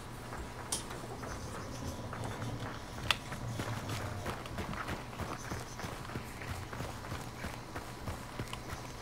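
Footsteps crunch through dry grass and leaves.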